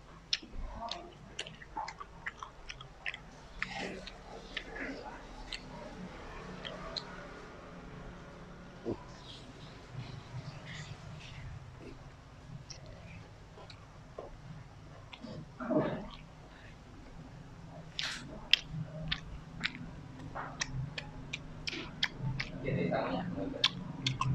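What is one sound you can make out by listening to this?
A young man chews food noisily and smacks his lips up close.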